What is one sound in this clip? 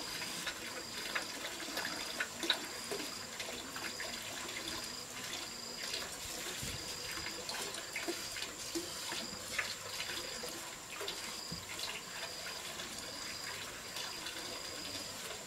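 Wet mortar scrapes and squelches as hands scoop and spread it on bricks.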